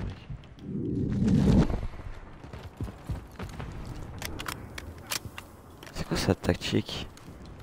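An automatic rifle fires in short, sharp bursts.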